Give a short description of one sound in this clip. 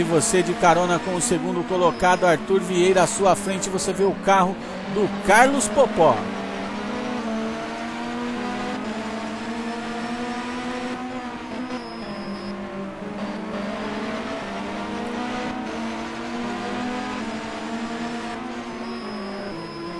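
A racing car engine roars steadily, its pitch climbing and dropping back with each gear change.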